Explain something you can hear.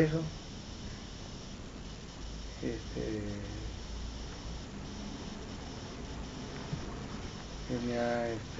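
A man speaks briefly close by, in short bursts.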